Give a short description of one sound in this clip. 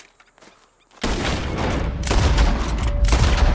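A rifle fires loudly.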